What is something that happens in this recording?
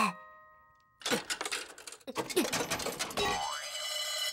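A metal handle cranks and clanks.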